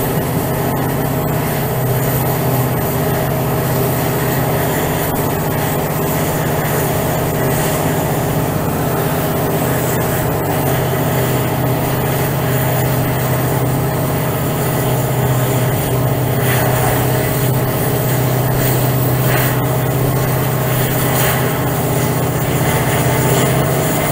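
Train wheels rumble and clatter over the rails.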